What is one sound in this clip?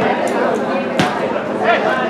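A football thuds off a kick.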